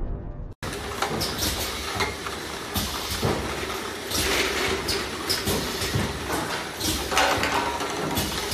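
Glass bottles clink and rattle against each other.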